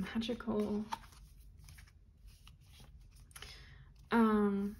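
Cards rustle and flick as a deck is shuffled.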